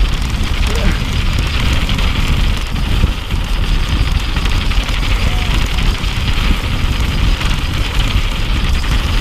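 Wind rumbles loudly past the rider.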